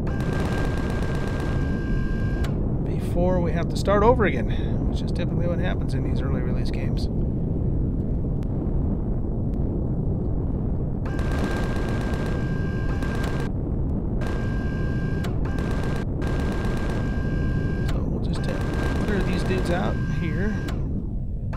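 A spacecraft engine hums steadily.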